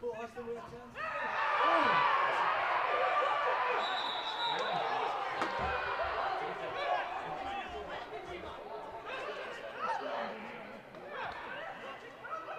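A crowd of spectators cheers loudly.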